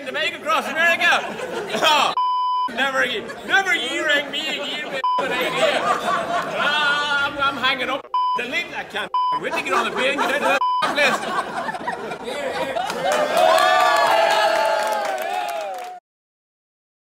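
A middle-aged man talks loudly and with animation close by.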